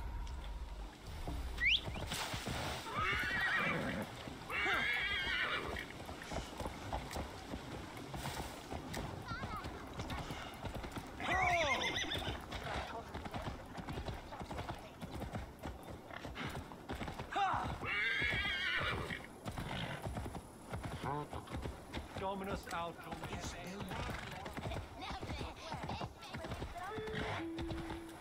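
A horse's hooves clop steadily on a dirt path.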